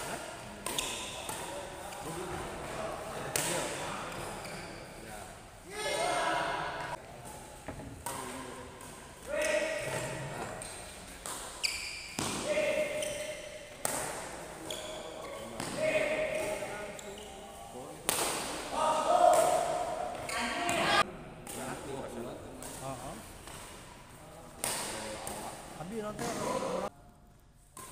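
Shuttlecocks are struck with rackets in sharp pops.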